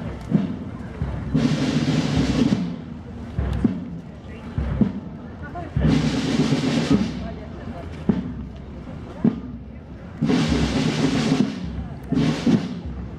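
A crowd of people murmurs and chats outdoors.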